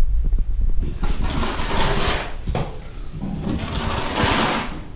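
A broom scrapes across a hard floor.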